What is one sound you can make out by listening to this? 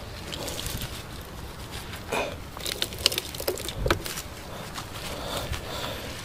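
A gloved hand scrapes through loose soil.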